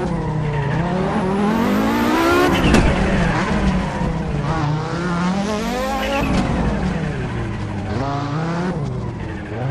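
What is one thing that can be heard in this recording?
A turbocharged five-cylinder rally car accelerates hard, revving up and shifting through the gears.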